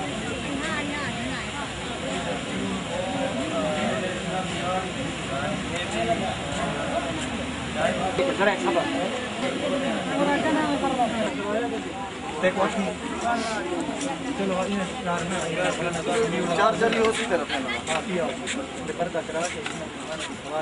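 A crowd of women and men chatter in the background outdoors.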